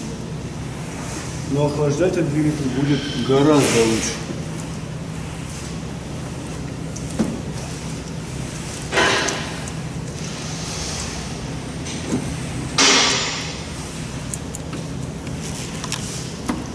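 Metal parts clink and rattle close by.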